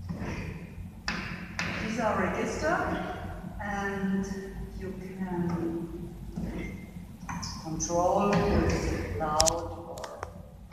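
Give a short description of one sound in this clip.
Organ music plays in a large echoing hall.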